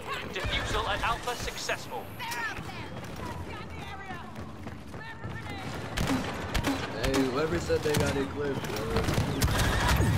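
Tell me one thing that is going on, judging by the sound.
Blasters fire rapid shots.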